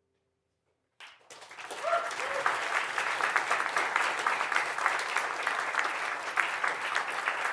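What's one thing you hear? An audience applauds and cheers in a room.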